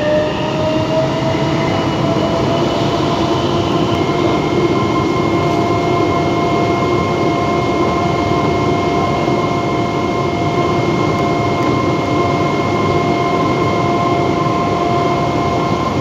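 Train motors whine with a steady high hum.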